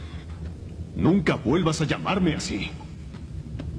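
A man speaks angrily.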